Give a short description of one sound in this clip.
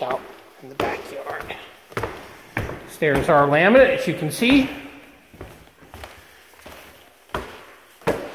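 Footsteps thud on wooden stairs.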